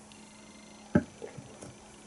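A glass clinks down on a table.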